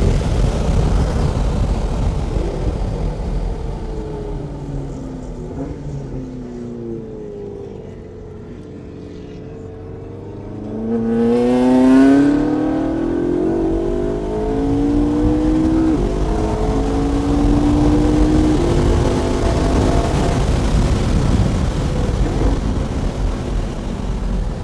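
Wind and road noise rush past the car.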